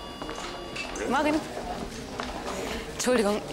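A young woman speaks cheerfully.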